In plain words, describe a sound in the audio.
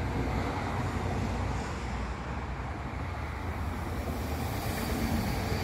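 A high-speed train approaches and rushes past with a rising roar.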